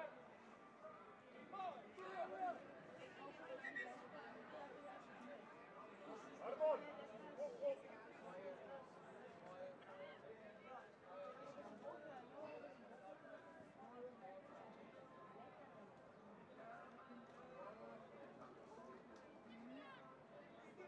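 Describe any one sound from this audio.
Young men shout and call out to each other on an open field.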